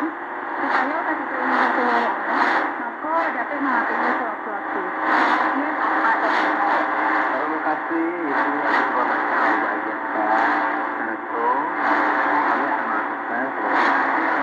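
A small radio plays a muffled, thin-sounding broadcast with steady hiss.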